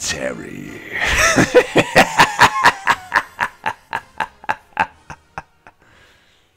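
A man laughs in rapid, maniacal bursts that slow and fade.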